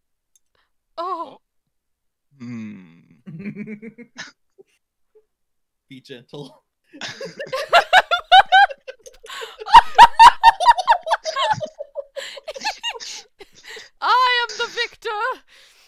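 A young woman talks and laughs with animation into a headset microphone.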